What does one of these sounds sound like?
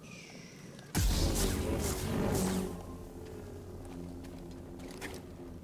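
A lightsaber hums and buzzes.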